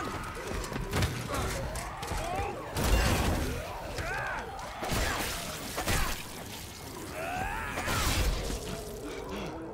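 Heavy blows land in a violent struggle.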